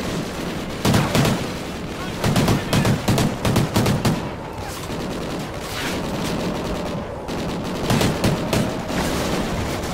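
Assault rifles fire.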